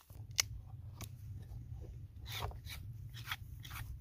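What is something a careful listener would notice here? A knife shaves and scrapes at a wooden stick.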